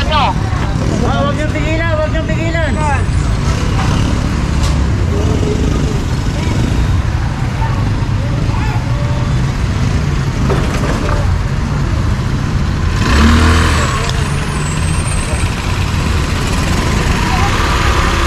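A motorcycle engine idles and rumbles close by.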